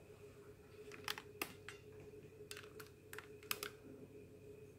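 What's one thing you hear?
A light object taps and clicks against a glass tabletop.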